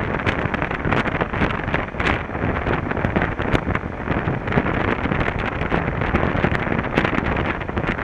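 Strong wind buffets loudly against the microphone.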